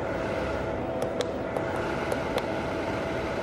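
Buttons click softly as a finger presses them.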